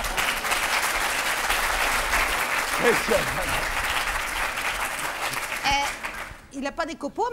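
An audience laughs and claps loudly.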